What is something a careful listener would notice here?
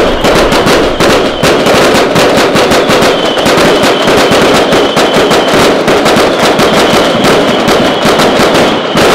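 Fast electronic dance music with a pounding beat plays loudly.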